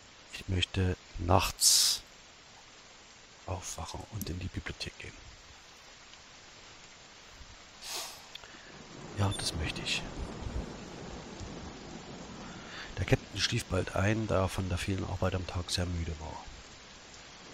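A middle-aged man speaks calmly into a headset microphone, close by.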